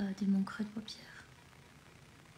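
A young woman speaks briefly and softly, close by.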